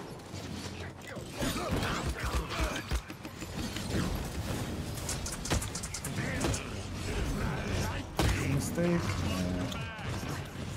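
Game weapons fire and blast in quick bursts.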